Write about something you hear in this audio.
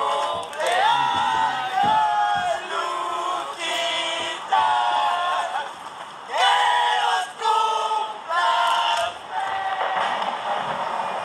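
Young men and women sing together up close.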